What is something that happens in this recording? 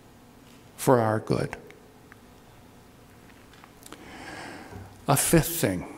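A middle-aged man speaks with emphasis into a microphone, pausing between phrases.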